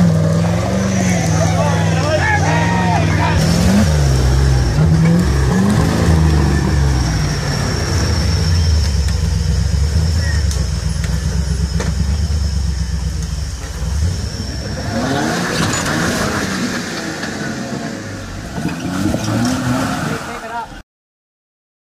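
An off-road vehicle's engine revs hard, rising and falling in pitch.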